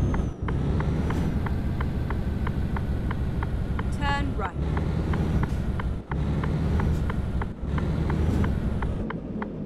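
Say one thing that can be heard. A truck engine rumbles steadily, with a low hum.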